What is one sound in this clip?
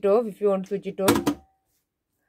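A finger presses a button with a soft click.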